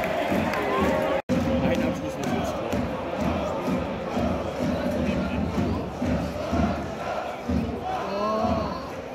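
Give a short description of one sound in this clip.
A large crowd chants and sings loudly in an open stadium.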